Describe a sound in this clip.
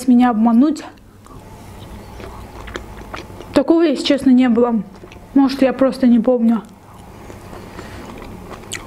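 A young woman chews food with soft, wet mouth sounds up close.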